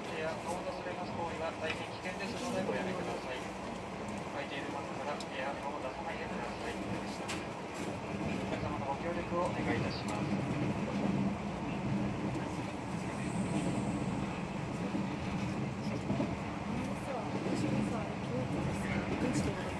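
Wheels clatter and knock over rail joints.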